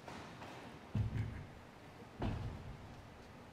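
Footsteps thud on a wooden platform.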